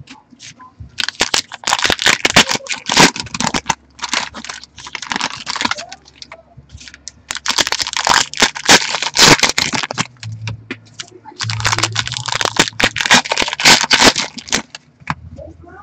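Foil card wrappers crinkle and rustle as they are torn open.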